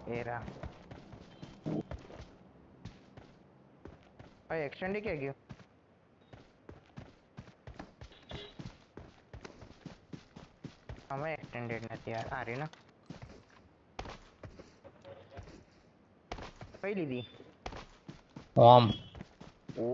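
Footsteps pad quickly through grass.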